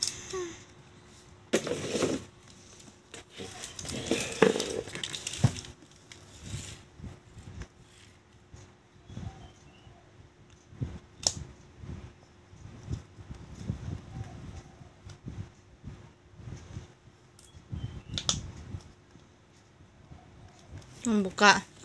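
A young boy crinkles a plastic snack wrapper in his hands.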